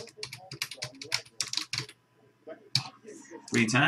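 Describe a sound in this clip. A man types quickly on a keyboard.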